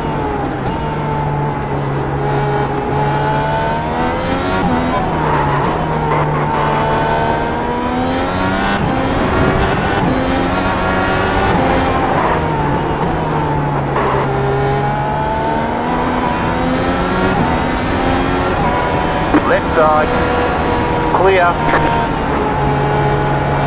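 A racing car engine roars loudly, rising and falling in pitch as it speeds up and shifts gears.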